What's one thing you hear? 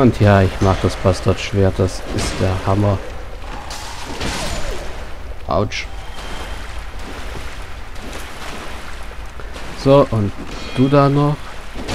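A sword swings and strikes with metallic clangs.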